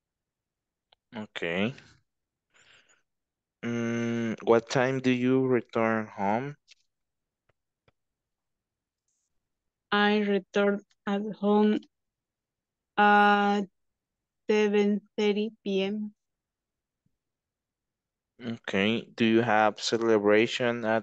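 A middle-aged woman speaks calmly through an online call, in bursts with pauses.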